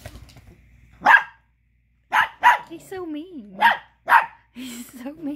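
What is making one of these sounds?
A small dog barks sharply, close by.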